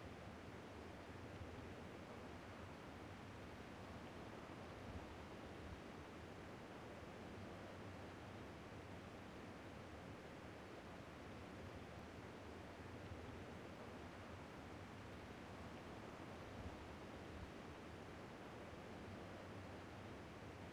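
Wind blows steadily through tall grass.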